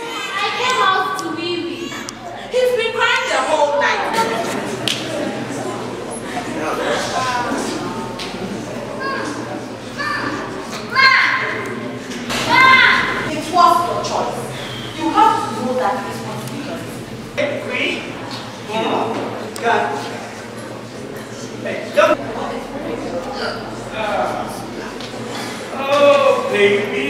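A woman speaks loudly.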